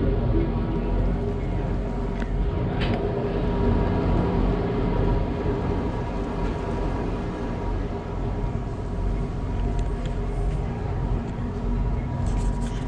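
A funicular car rumbles and hums steadily along its track.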